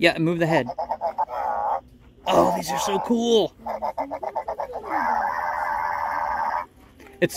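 A small toy robot beeps and warbles in electronic chirps.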